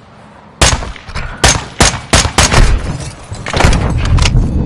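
Gunshots fire in quick bursts close by.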